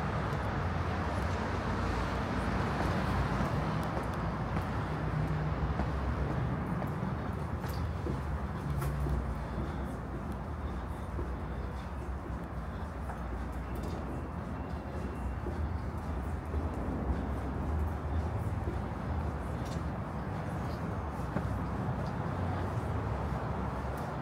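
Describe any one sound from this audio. City traffic rumbles steadily in the distance.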